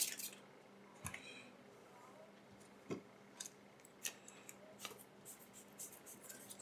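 Small plastic parts click and tap as hands handle them.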